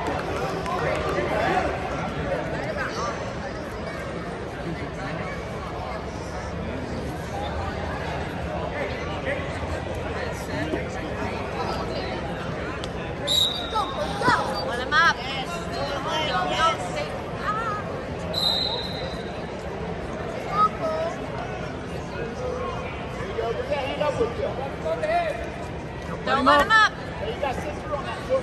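Voices murmur and call out across a large echoing hall.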